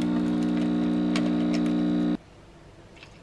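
A coffee machine hums and buzzes steadily as it pours.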